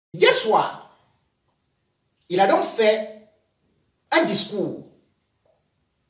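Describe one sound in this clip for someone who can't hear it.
A young man speaks calmly in short phrases nearby.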